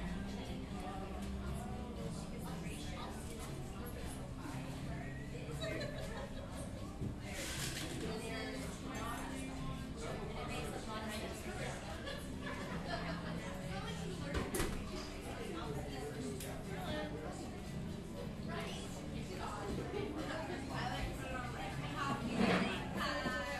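A crowd of men and women chat indistinctly all around in a busy room.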